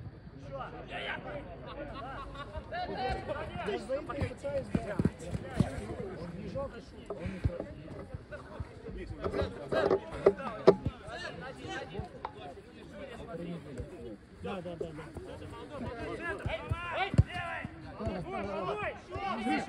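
Men shout to each other across an outdoor pitch.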